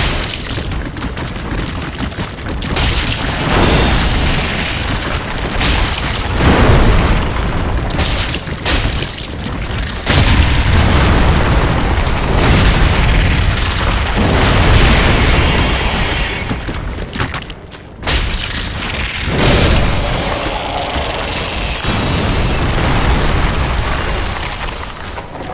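A huge creature stomps and thrashes heavily.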